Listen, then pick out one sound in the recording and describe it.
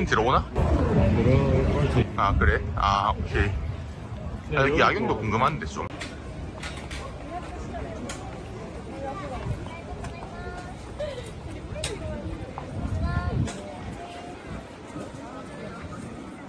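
A crowd of people chatters on a busy street outdoors.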